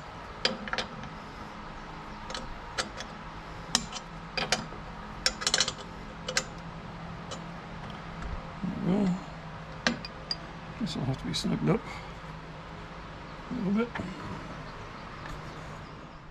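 Small metal parts click and clink as a hand works a clip.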